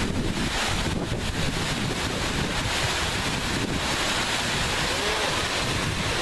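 Water rushes loudly over rocks.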